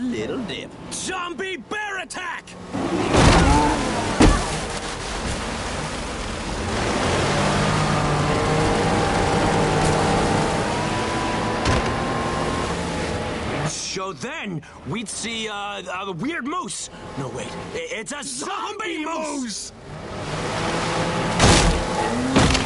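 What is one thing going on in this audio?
A motorboat engine hums steadily.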